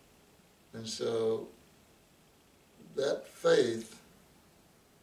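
An older man speaks calmly and close up, in short phrases.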